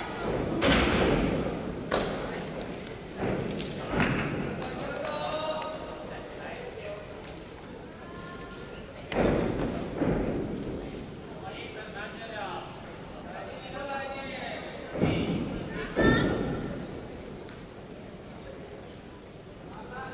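Spectators talk quietly in the background.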